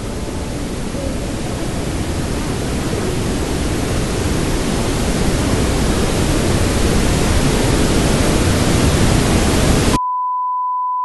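Small waves wash onto a beach.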